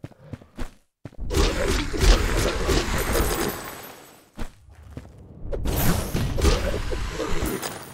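Blades clash and swish in a fight.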